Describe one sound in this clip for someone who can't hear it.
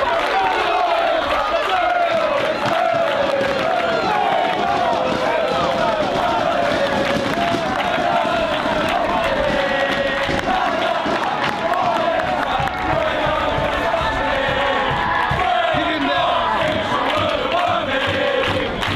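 A large crowd of fans sings and chants loudly outdoors.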